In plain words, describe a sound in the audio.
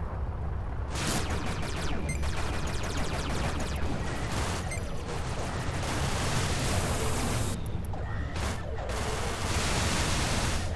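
Laser cannons fire with a rushing blast in a game.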